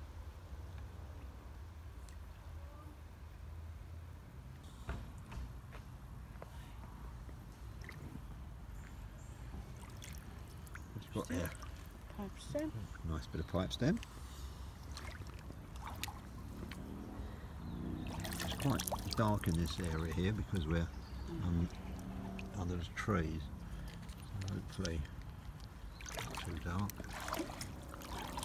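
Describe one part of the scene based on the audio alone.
Shallow water ripples and trickles gently.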